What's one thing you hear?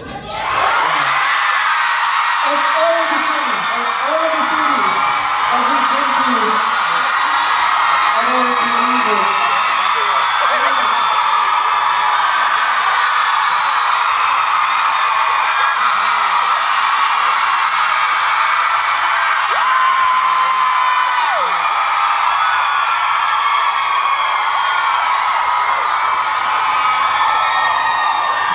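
A large crowd screams and cheers loudly throughout.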